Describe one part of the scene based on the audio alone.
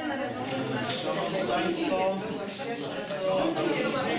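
Several men and women talk over one another.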